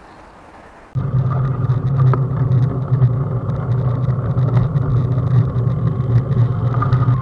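Wind rushes loudly past while riding a bicycle.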